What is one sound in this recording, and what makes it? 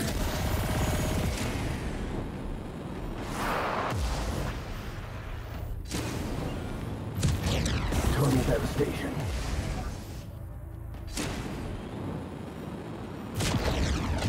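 Laser beams zap in bursts.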